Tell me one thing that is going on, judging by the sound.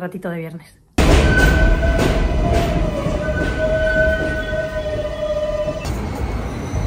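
A subway train rumbles past with a high whine.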